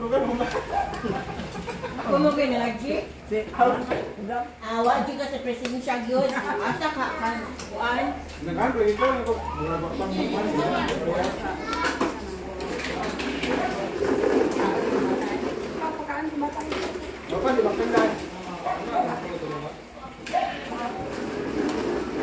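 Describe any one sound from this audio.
Several adults chat and talk over each other nearby.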